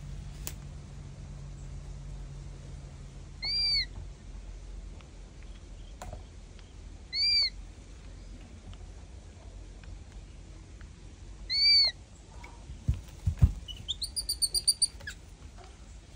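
A baby monkey sucks milk from a bottle with soft smacking sounds.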